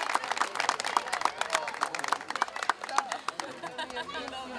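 An audience claps and applauds outdoors.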